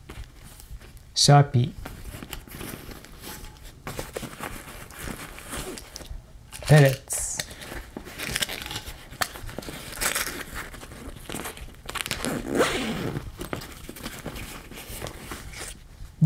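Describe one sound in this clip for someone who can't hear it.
Hands rub and rustle against a fabric bag.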